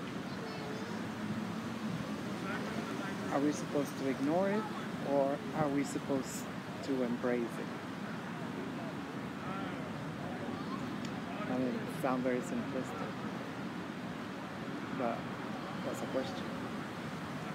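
A middle-aged woman talks casually close by, outdoors.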